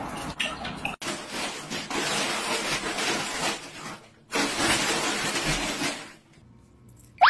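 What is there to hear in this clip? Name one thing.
A plastic bag rustles and crinkles loudly.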